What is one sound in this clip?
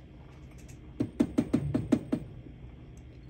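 A finger taps lightly on a glass tube several times in quick succession.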